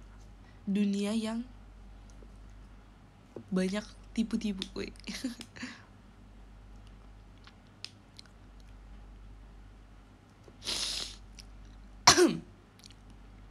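A young woman speaks softly, close to a microphone.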